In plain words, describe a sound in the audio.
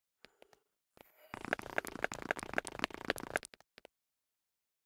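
A pickaxe chips rapidly at stone.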